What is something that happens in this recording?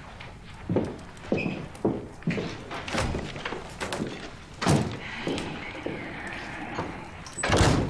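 Heavy boots thud on a wooden floor.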